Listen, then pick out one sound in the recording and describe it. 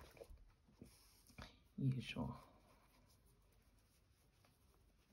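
Yarn rustles softly as it is pulled through fabric.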